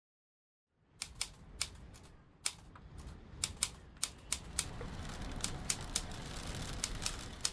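Typewriter keys clack in irregular bursts.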